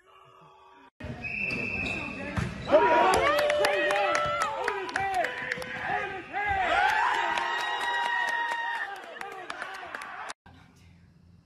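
Young men shout and cheer in an echoing gym.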